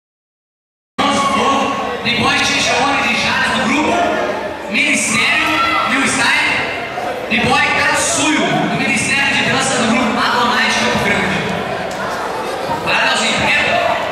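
A young man speaks with animation into a microphone, heard through loudspeakers in a large echoing hall.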